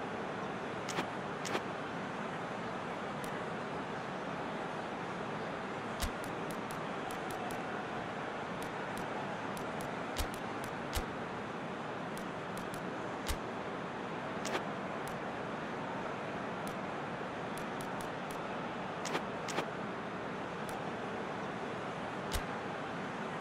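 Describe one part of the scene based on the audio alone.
Menu selections click sharply.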